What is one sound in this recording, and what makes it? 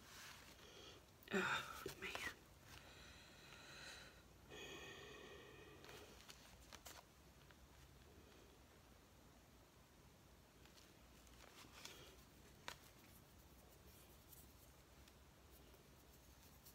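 Stiff paper pages rustle and flap as they are turned.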